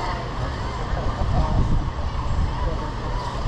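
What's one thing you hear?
Wind blows against the microphone.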